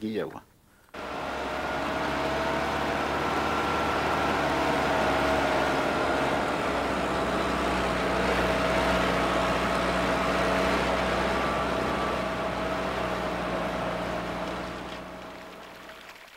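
A vehicle engine drones steadily while driving.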